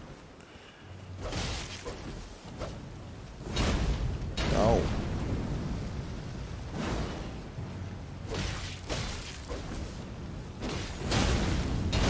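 Swords clash and slash in a game.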